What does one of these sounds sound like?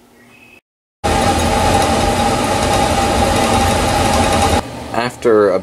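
A stirring motor hums and whirs steadily.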